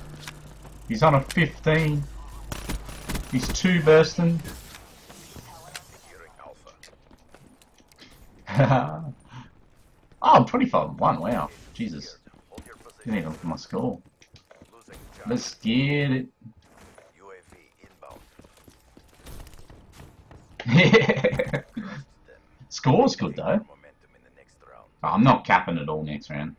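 A young man talks with animation close to a microphone, in bursts with pauses.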